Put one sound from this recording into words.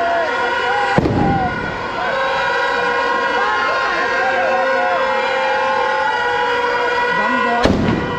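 A firework bursts with a loud bang.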